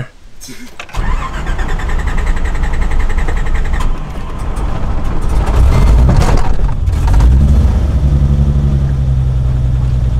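A car engine starts and roars as the car drives off, revving up and down.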